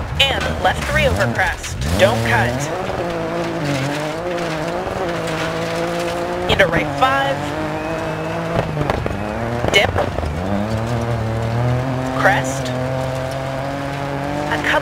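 A rally car engine revs hard, rising and falling as gears change.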